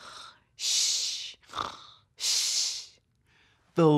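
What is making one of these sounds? A young man makes loud, breathy snoring sounds.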